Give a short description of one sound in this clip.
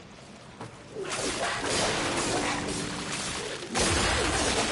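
A blade slashes and strikes.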